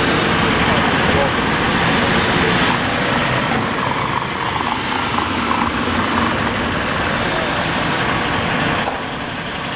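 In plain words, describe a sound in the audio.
A diesel fire engine rumbles as it pulls out.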